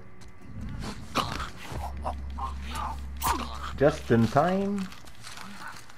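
A man chokes and gasps up close in a struggle.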